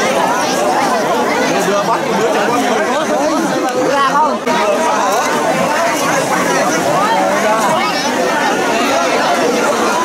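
A large outdoor crowd of men, women and children chatters all around.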